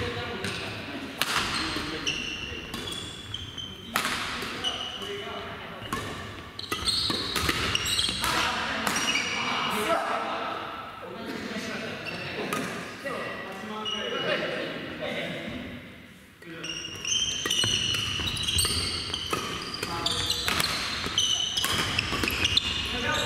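The sound echoes around a large hall.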